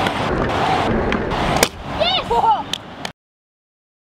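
A scooter lands with a sharp clack on concrete.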